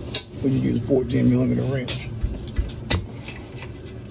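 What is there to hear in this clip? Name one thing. A metal tool clinks against metal.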